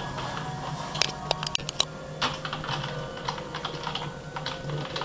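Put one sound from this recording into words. Keyboard keys click and clatter under typing fingers.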